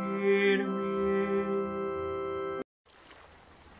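A man sings a long, steady note up close.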